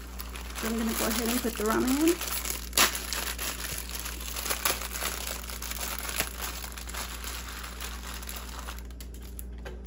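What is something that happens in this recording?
A plastic wrapper crinkles and rustles as hands tear it open.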